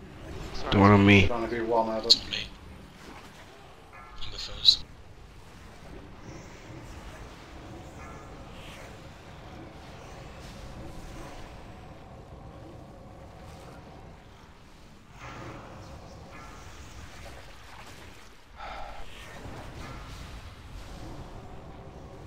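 Magic blasts and combat effects crackle and rumble in a battle.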